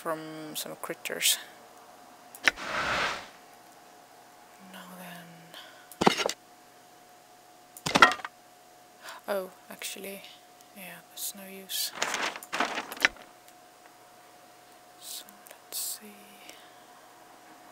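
Menu clicks and chimes sound in quick short bursts.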